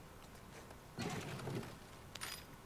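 A drawer rattles as it is searched.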